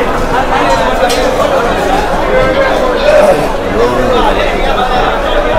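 Several men talk loudly nearby, their voices overlapping.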